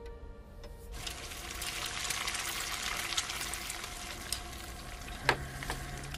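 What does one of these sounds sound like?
Batter sizzles in a hot frying pan.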